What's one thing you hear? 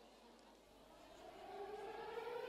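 A trumpet starts to play.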